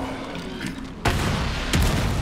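A gunshot bangs with a loud echo.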